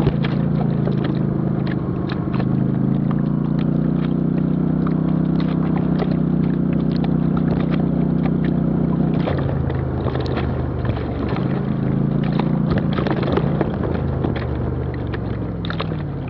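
Tyres crunch and knock over stones and ruts.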